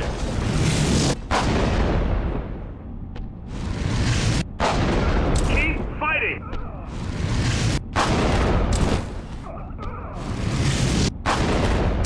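Loud energy blasts roar and crackle in bursts.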